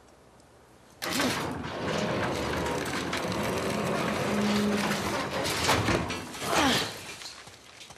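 A metal gate rattles and creaks as someone squeezes through it.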